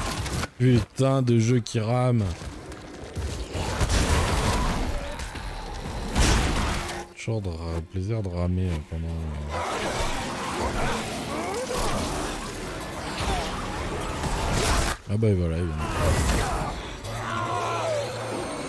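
Monsters shriek and snarl loudly.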